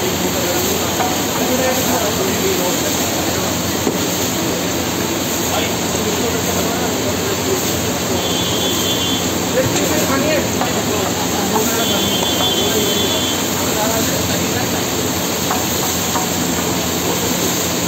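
A metal spatula scrapes and clatters against a griddle.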